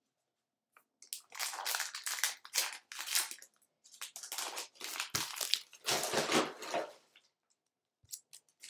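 A foil card wrapper crinkles and tears as it is opened.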